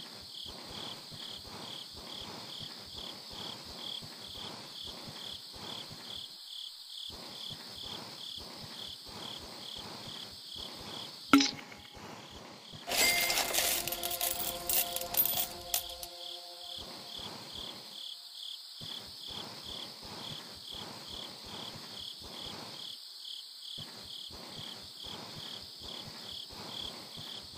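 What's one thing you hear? Footsteps thud quickly and steadily.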